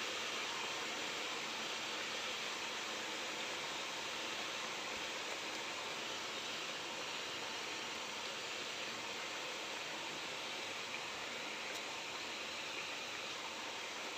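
Potatoes clunk softly as they are dropped into the pot.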